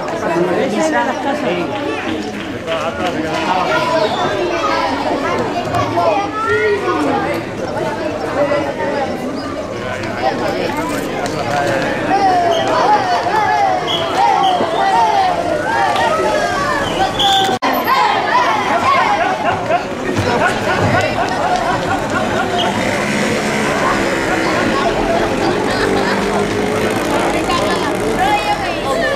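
A crowd of people shouts and calls out outdoors.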